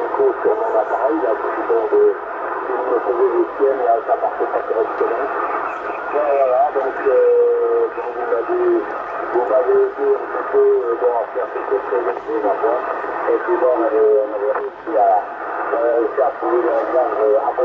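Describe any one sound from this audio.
A man's voice comes through a radio loudspeaker, thin and crackly.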